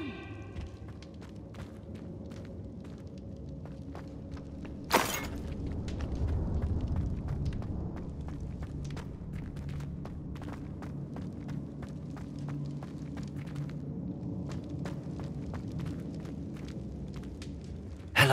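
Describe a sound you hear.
Footsteps hurry across a stone floor.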